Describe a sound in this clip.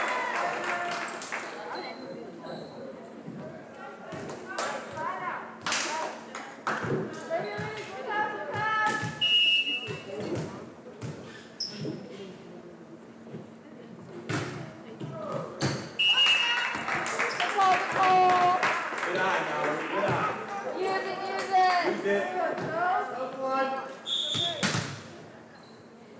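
Young women cheer and shout loudly in a large echoing gym.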